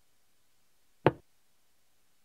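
A single short menu click sounds.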